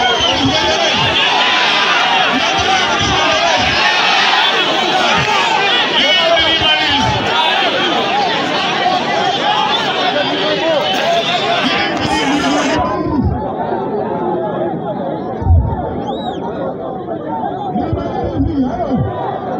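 A man speaks loudly through a loudspeaker outdoors.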